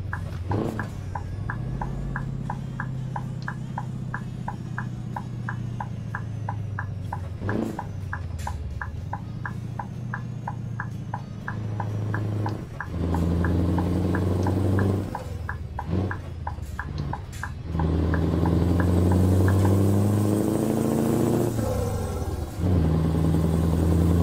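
A truck engine rumbles and revs up and down.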